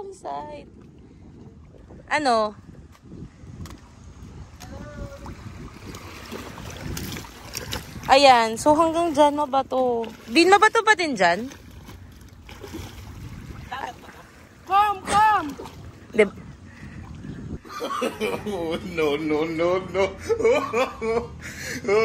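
Water splashes around wading feet.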